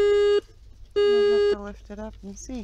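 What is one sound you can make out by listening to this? A metal detector beeps in short, steady tones.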